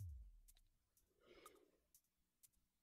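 A young woman murmurs briefly, close to a microphone.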